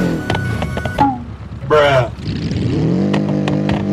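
A car crashes and thuds onto the ground.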